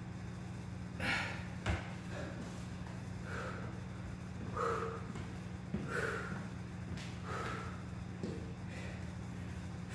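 A man breathes out hard in short, heavy bursts.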